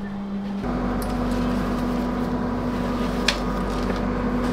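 A backpack rustles and bumps as it is pushed onto a luggage rack.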